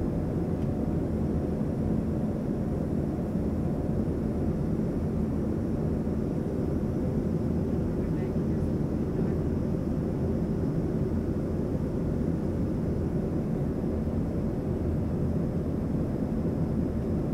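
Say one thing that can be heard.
A jet airliner's engines roar steadily in the cabin.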